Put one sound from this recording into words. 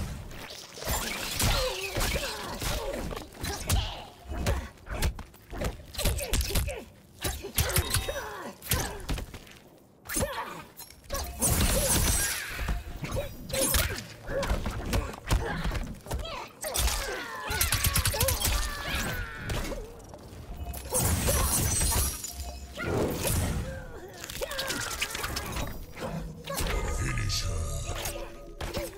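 Punches and kicks land with heavy thuds in a video game fight.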